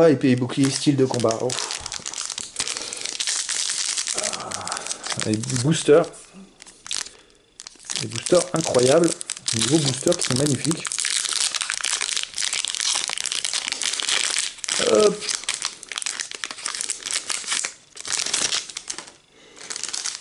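A foil wrapper crinkles and rustles in hands.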